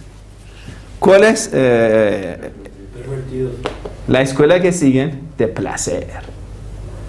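A man speaks calmly and clearly, as if explaining a lesson.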